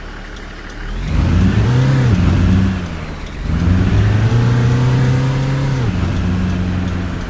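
A bus engine revs up and down as the bus pulls away.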